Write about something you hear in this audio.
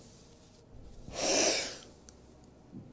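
A young woman laughs loudly into a microphone.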